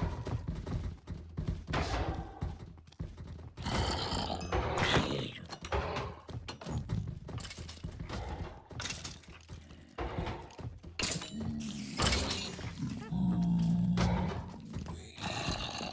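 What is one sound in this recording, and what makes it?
Creatures groan and grunt throughout.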